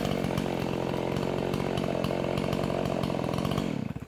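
A chainsaw engine idles nearby.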